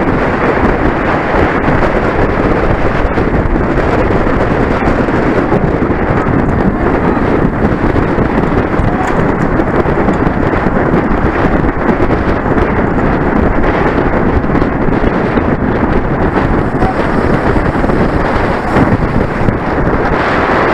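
Wind rushes loudly past close by, as if from a moving bicycle.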